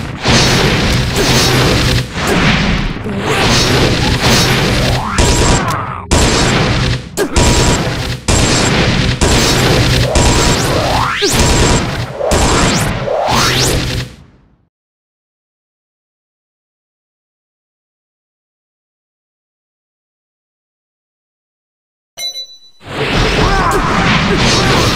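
Loud ice spells crash and shatter in a fierce game battle.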